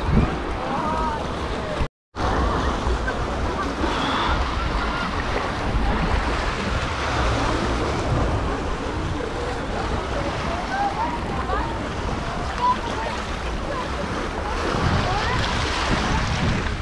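Wind blows in gusts outdoors.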